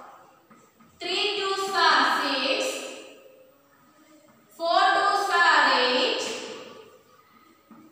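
A woman speaks clearly, reading out slowly, close by.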